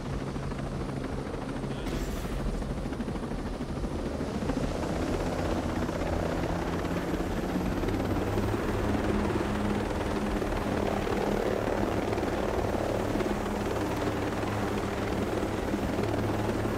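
A helicopter's rotor thumps and its engine whines, growing louder as it lifts off and flies.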